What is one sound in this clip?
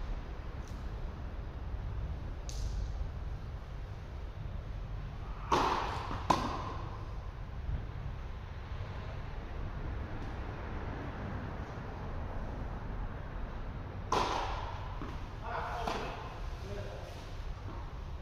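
Tennis balls pop off rackets in a large echoing hall.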